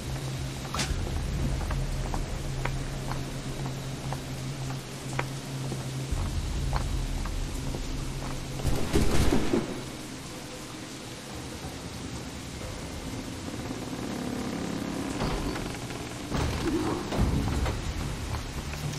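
Footsteps tap lightly on roof tiles.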